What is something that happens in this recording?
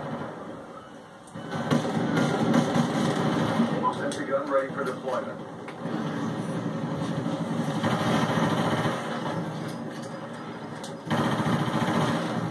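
Video game gunfire rattles through a television speaker.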